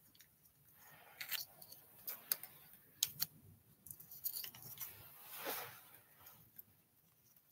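A man speaks quietly and close by, in short bursts.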